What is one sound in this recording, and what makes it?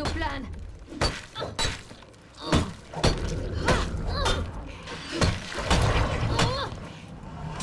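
Gunshots ring out in rapid bursts.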